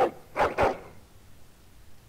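A dog growls.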